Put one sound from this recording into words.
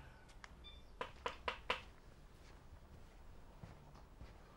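A man's footsteps scuff on a paved floor nearby.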